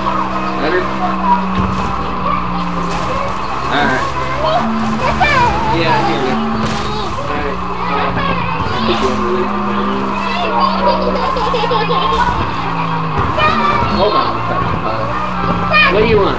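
A car engine roars steadily at high speed.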